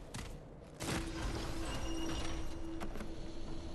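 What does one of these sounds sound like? A soft chime rings.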